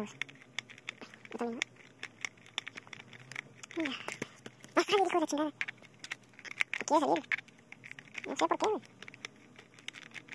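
A plastic game controller clicks and taps as it is handled close by.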